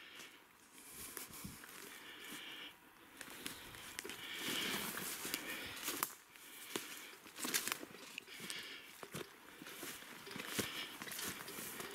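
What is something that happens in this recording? Footsteps crunch and rustle through dry leaves and undergrowth.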